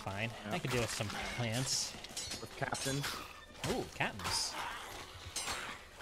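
A sword swishes and clangs against bones.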